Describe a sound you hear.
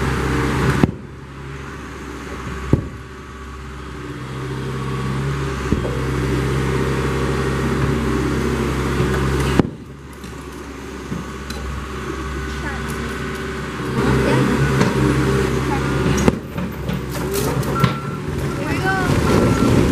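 A heavy diesel engine rumbles steadily nearby.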